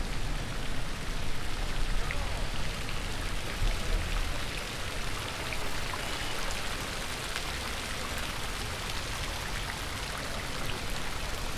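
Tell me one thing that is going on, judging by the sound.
Water splashes steadily in a fountain.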